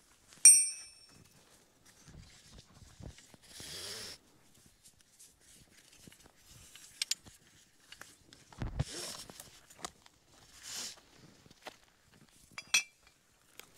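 A nylon strap rustles as it is handled.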